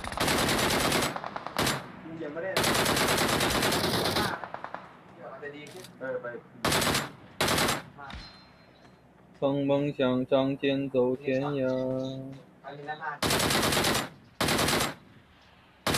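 Sniper rifle shots crack loudly in a video game.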